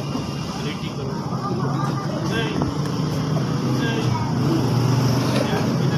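Teenage boys chatter in the background.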